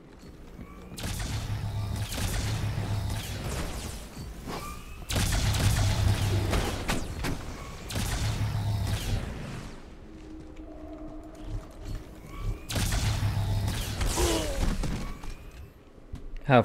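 Rapid energy weapon fire crackles and roars in bursts.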